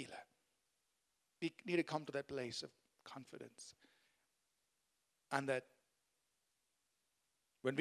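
A man speaks into a microphone in measured bursts with pauses, heard through loudspeakers in a large room.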